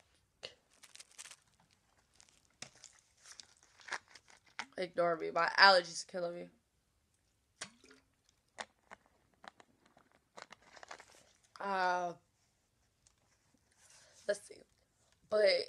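A plastic bottle crinkles and crackles in hands.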